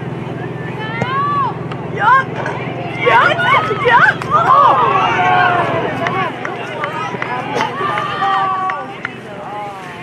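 Young women shout and call out across an open field.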